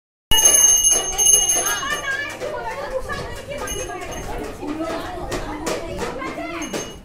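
Several women talk and chatter nearby.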